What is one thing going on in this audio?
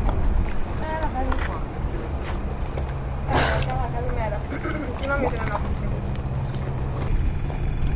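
Water laps gently against a stone quay.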